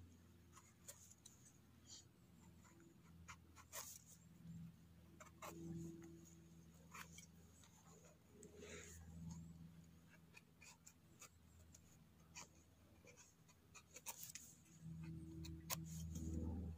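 A small knife scrapes and scratches at a mushroom's soft flesh.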